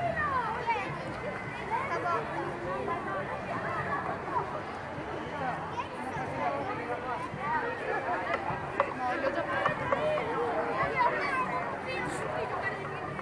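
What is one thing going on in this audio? Children shout and squeal excitedly nearby.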